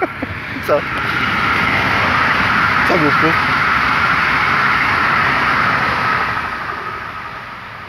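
A dog pants heavily close by.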